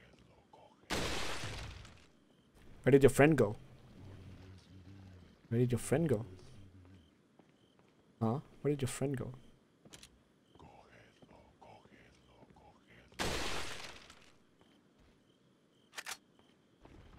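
A rifle fires loud shots.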